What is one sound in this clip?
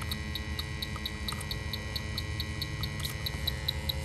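A spray bottle squirts liquid in short bursts.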